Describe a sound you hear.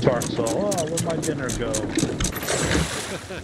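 A wooden capstan ratchets with rapid clicks as it turns.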